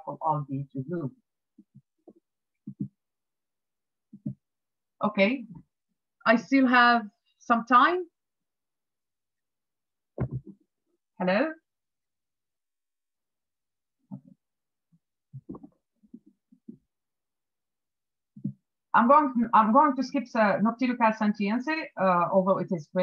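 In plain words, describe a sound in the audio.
A woman speaks calmly over an online call, in short bursts with pauses.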